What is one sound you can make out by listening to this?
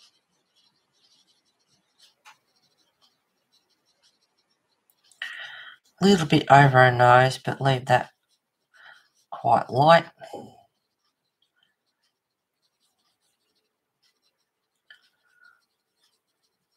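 A colored pencil scratches softly on paper.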